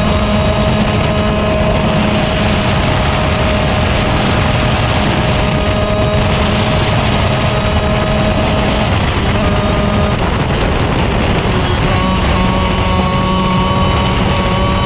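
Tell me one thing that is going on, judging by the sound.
Wind buffets loudly past the driver.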